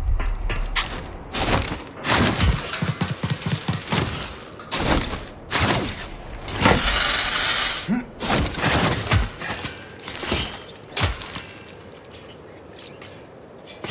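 Hands and boots clank on metal grating during a climb.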